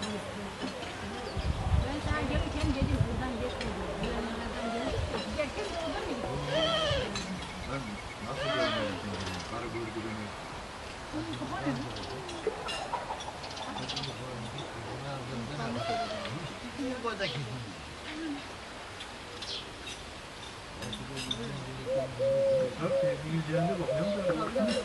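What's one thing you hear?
Several men and women chat and talk over one another some distance away outdoors.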